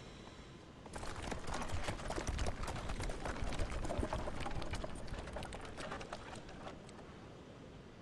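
Horse hooves clatter as a carriage rolls along.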